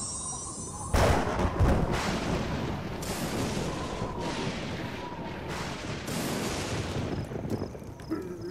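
Thunder cracks and rumbles loudly.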